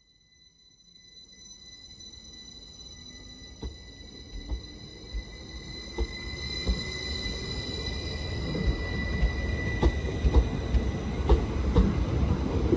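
An electric train rolls past close by with a rising whine.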